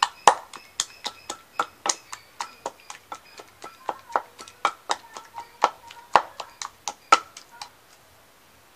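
A wooden pestle pounds rapidly in a mortar.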